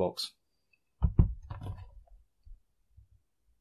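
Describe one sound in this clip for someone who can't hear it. Keys on a keyboard click and clack under fingers.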